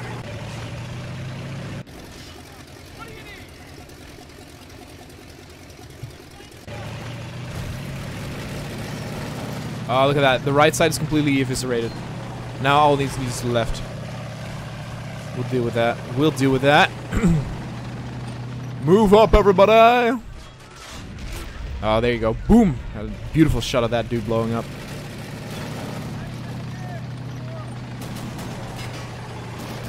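A tank engine rumbles with a steady low drone.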